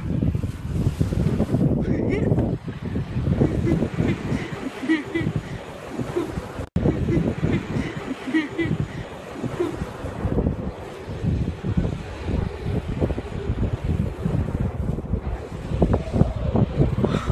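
A car engine roars and revs as the car slides around on snow.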